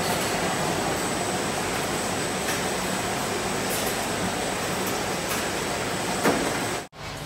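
Conveyor belts run with a steady machine rumble and whir.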